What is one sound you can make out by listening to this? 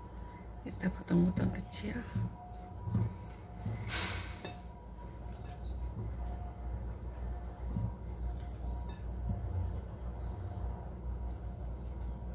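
Pieces of banana drop softly onto a ceramic plate.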